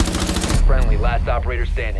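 Gunfire rattles loudly nearby.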